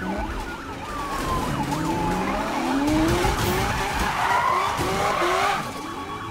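A car smashes through a barrier with a loud crash.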